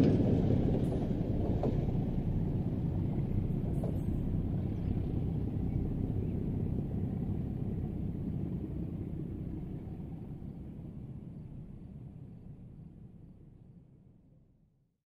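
Wind rumbles outdoors and slowly fades away.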